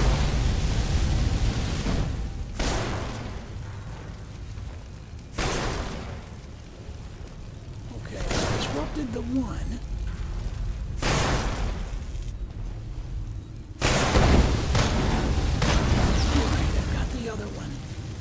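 Magic spells crackle and whoosh in sudden bursts.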